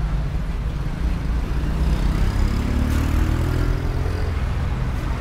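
A car engine revs up as traffic pulls away.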